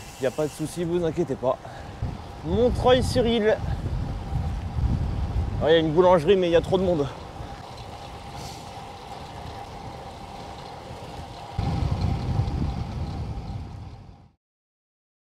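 Wind rushes and rumbles against a microphone.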